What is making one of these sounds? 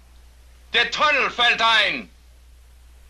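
A man speaks in a low, tense voice up close.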